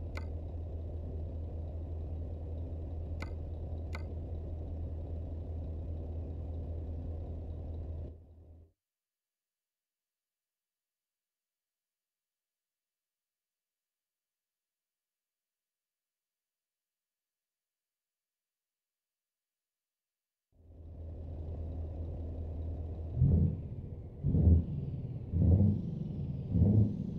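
A diesel truck engine idles, heard from inside the cab.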